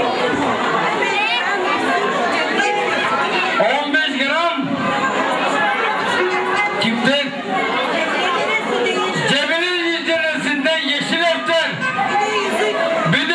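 A man speaks loudly through a microphone and loudspeaker, announcing with animation.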